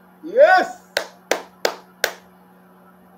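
A young man claps his hands several times.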